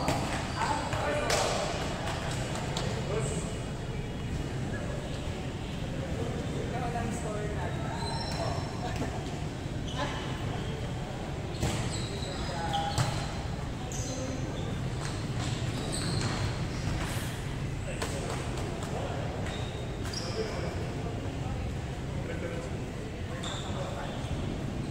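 Young men call out to each other across a large echoing gym.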